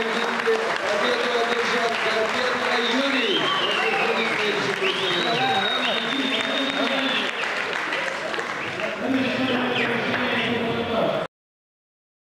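A large indoor crowd cheers and shouts loudly, echoing in a big hall.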